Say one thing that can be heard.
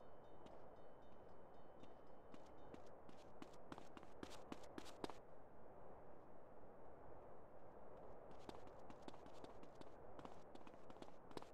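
Footsteps slap quickly on pavement as a boy runs.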